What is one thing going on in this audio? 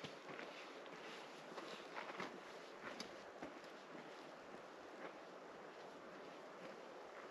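Footsteps crunch on a rocky trail outdoors.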